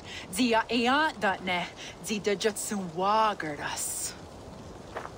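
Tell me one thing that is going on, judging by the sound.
A young woman speaks clearly and with feeling, close by.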